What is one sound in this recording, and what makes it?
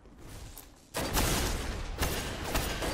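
An energy blast bursts with a roar in a video game.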